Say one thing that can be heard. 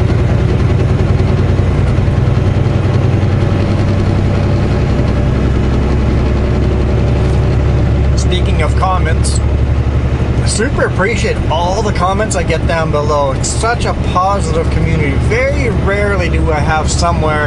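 A truck engine rumbles low and steady from inside the cab.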